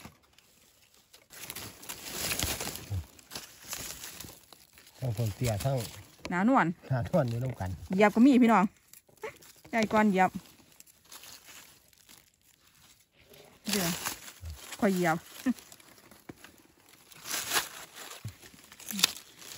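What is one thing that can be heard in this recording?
Dry leaves rustle and crackle as hands move through them.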